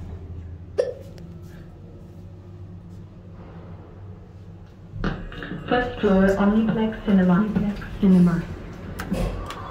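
An elevator hums steadily.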